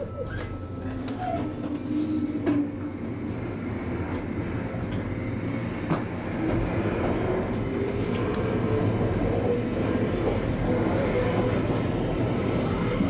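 A train's electric motor whines and rises in pitch as the train pulls away.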